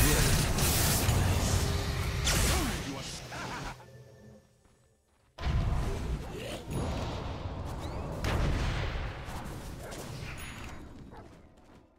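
Game spells crackle and burst in loud, busy flurries.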